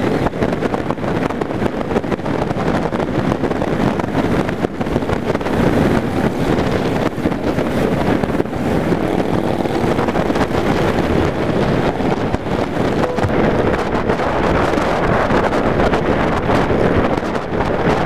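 A motorcycle engine rumbles steadily at cruising speed.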